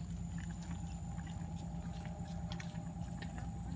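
A small child's footsteps patter on paving outdoors.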